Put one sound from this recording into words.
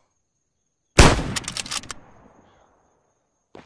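A rifle fires a loud shot that echoes away.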